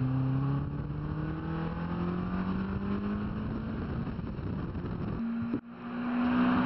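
Wind rushes past an open-top car.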